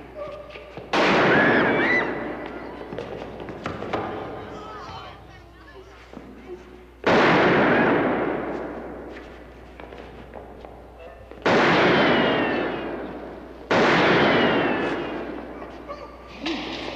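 Gunshots ring out and echo through a large hall.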